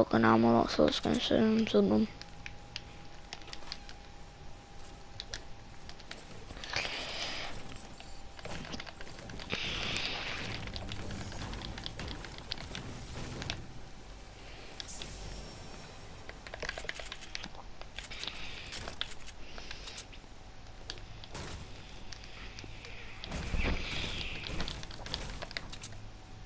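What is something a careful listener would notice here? Footsteps patter quickly across a floor.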